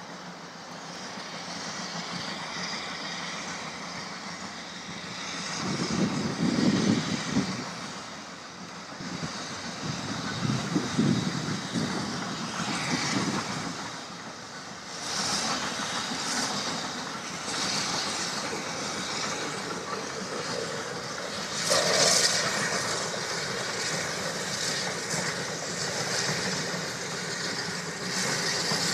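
Train wheels rumble and clatter along the rails.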